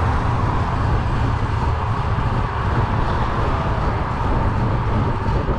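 Car tyres hum steadily on the road as the car drives along.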